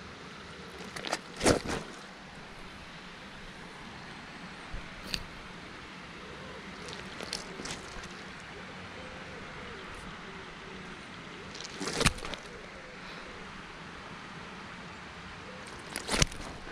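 A fish thrashes and flops in a landing net.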